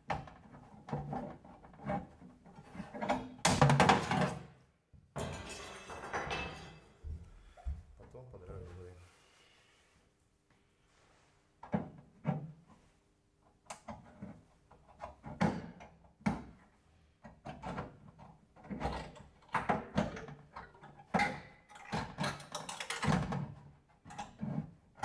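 Sheet metal clanks and rattles as it is handled.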